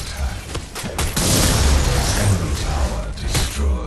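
A loud video game explosion booms.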